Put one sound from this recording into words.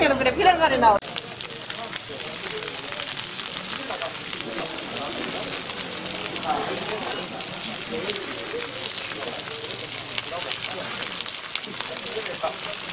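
Batter sizzles on a hot griddle.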